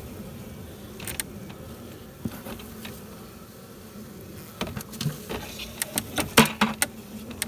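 A metal tool scrapes and knocks against wood.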